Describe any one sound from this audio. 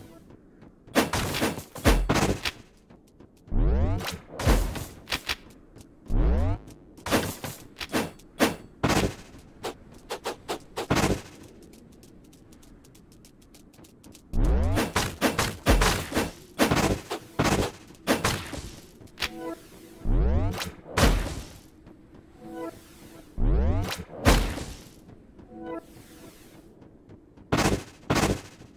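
Game combat effects burst and whoosh in quick, sharp hits.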